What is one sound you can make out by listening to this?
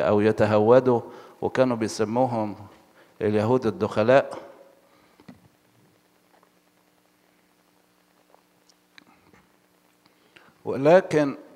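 An elderly man speaks slowly and expressively into a microphone.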